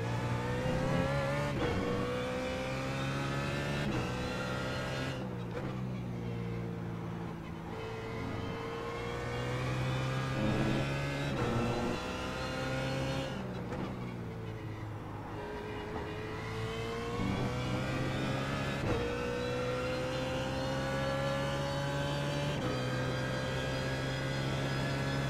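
A racing car engine roars loudly, revving up through the gears and dropping in pitch when braking.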